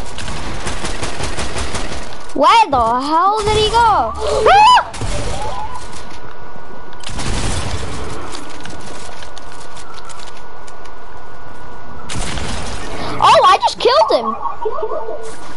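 Video game gunshots fire in quick bursts.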